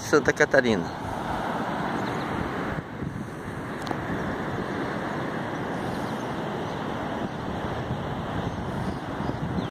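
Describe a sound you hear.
Waves wash softly onto a sandy shore.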